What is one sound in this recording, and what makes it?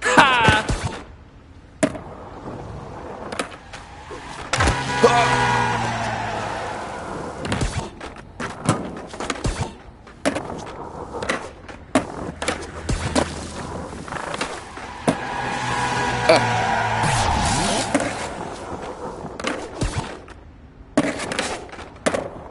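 A skateboard clacks sharply as it lands tricks.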